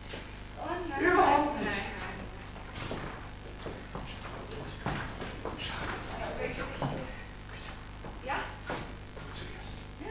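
A woman speaks in a large hall.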